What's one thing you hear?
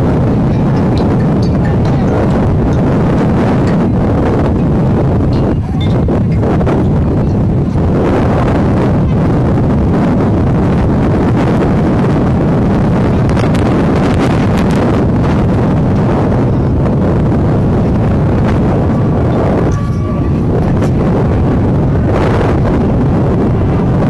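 A marching band plays brass and drums outdoors.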